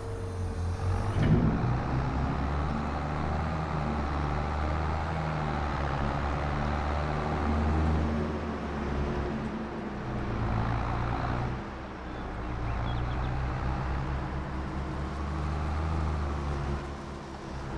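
A tractor engine revs up and drives off, rising and falling in pitch.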